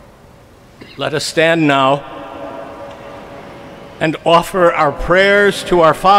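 A choir sings loudly in a large echoing hall.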